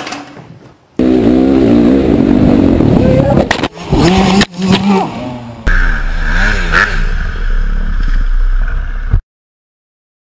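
A dirt bike engine revs loudly up close.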